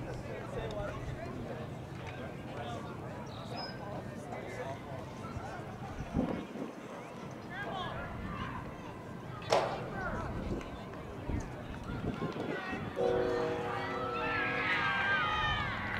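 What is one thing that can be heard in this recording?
Young players shout and call out to each other across an open field in the distance.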